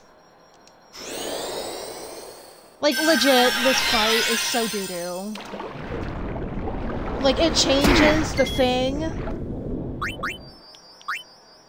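A magic spell shimmers and whooshes loudly.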